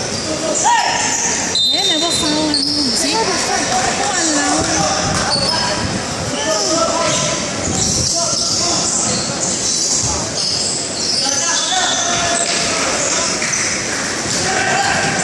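Young players shout and call out to each other across the court.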